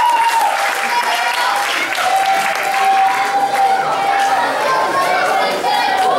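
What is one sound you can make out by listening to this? A crowd of children claps and cheers in a large echoing hall.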